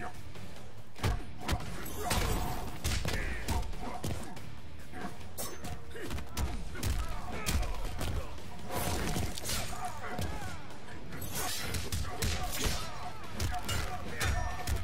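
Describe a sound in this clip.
Punches and kicks land with heavy thuds in a fighting game.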